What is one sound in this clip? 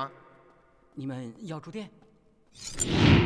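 A man answers in a nervous, quick voice.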